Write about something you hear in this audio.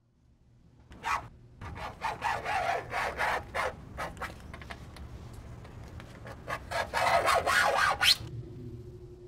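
A bunch of keys jingles and scrapes against a car's lock.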